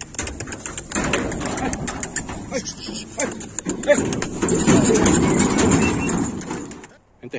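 Cattle hooves clatter and thud on a metal ramp.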